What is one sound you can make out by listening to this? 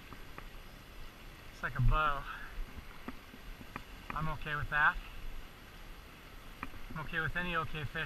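A river flows gently.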